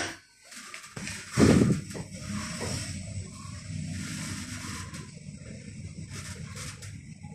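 An elevator hums steadily as it travels.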